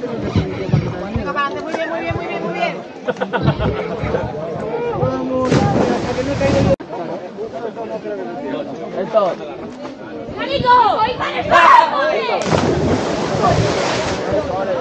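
A crowd of young people chatters and cheers loudly outdoors.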